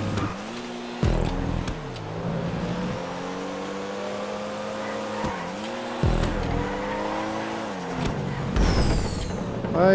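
A car exhaust pops and bangs.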